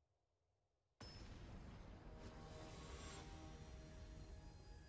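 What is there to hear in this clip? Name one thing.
Dramatic music starts suddenly and plays loudly.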